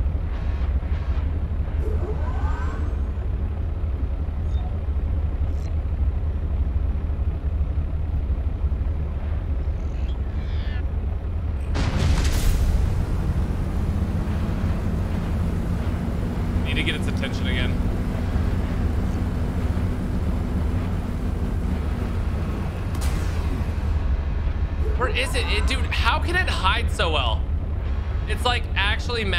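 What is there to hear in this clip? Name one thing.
A submarine engine hums low and steady underwater.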